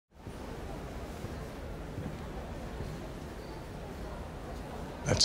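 A crowd murmurs quietly in a large indoor hall.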